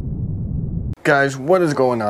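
A young man talks animatedly close to the microphone.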